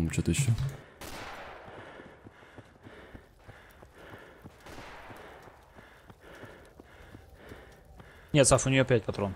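Footsteps tread steadily on the ground.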